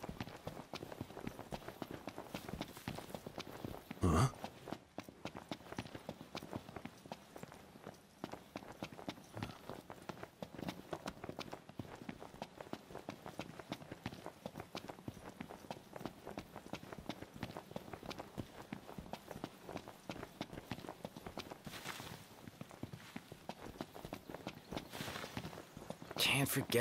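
Footsteps run quickly over dry grass and dirt.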